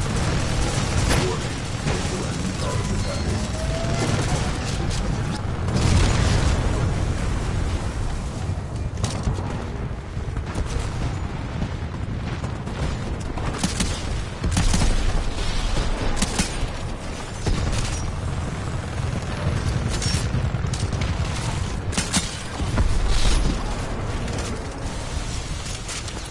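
Explosions boom with deep rumbles.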